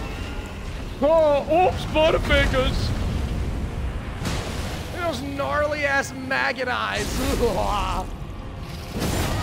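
A man talks excitedly into a microphone, close by.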